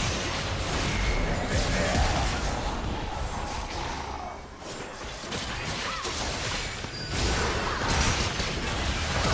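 Magical blasts and whooshing spell effects crackle in a fast game battle.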